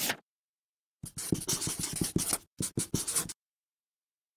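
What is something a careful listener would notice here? A marker squeaks in quick strokes across paper.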